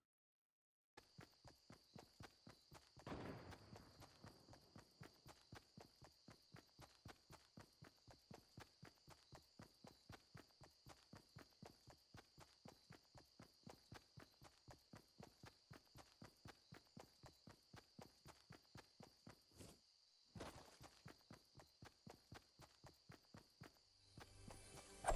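Quick footsteps thud steadily on grass.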